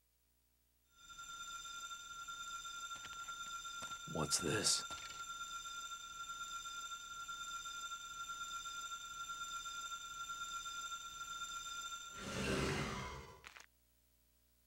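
A soft magical hum rings steadily.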